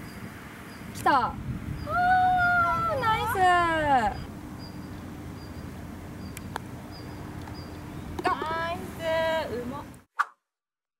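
Young women cheer and call out with excitement nearby.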